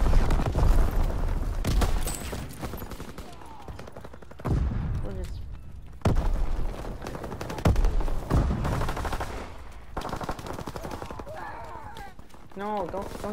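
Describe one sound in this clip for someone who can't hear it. Explosions boom and rumble repeatedly in a battle.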